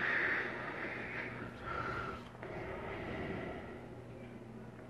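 A harmonica plays softly.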